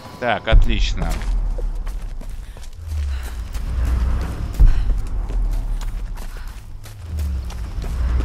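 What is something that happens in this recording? Footsteps crunch on forest ground.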